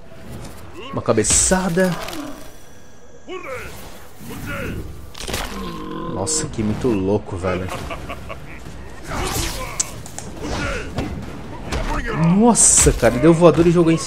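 Heavy punches and kicks land with crunching thuds.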